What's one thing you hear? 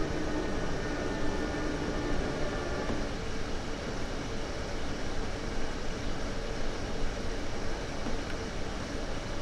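An electric train rumbles steadily along the rails with a low hum.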